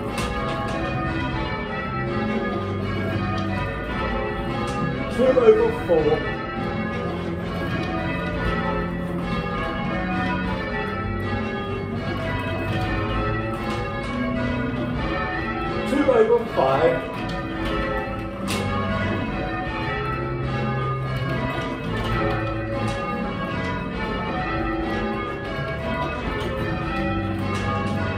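Church bells ring one after another in a steady, repeating round.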